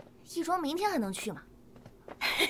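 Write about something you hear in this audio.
A young woman calls out cheerfully close by.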